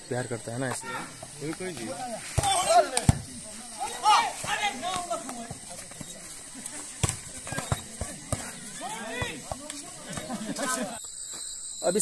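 A crowd of men chatters and shouts outdoors.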